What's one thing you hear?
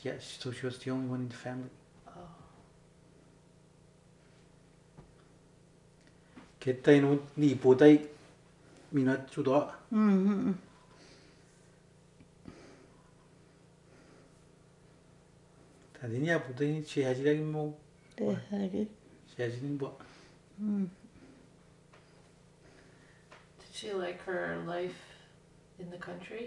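An elderly woman speaks slowly and calmly, close by, with long pauses.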